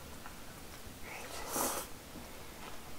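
A man slurps noodles loudly close to a microphone.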